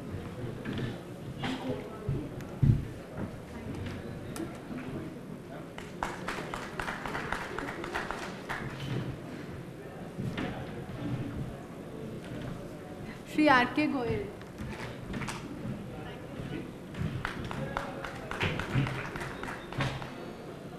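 A woman speaks over a loudspeaker, announcing calmly in a large hall.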